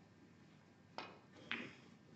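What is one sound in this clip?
A snooker cue strikes the cue ball.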